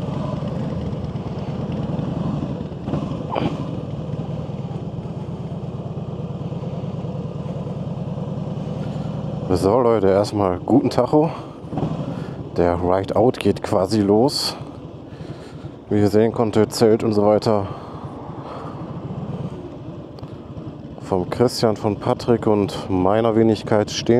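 A motorcycle engine rumbles at a low, steady idle close by.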